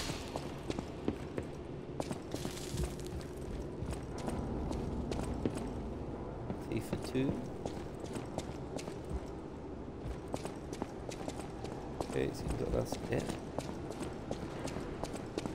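Footsteps run across hard floors.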